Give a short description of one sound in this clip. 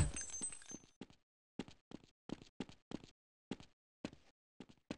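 Footsteps tap steadily on stone pavement.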